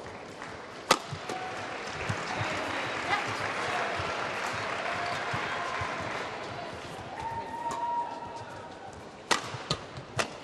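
Rackets smack a shuttlecock back and forth.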